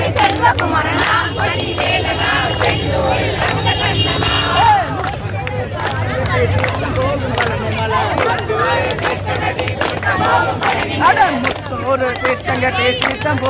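Hands clap sharply in a rhythm.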